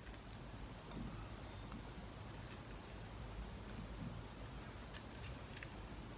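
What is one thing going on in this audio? Chopped tomato pieces drop softly into a glass bowl.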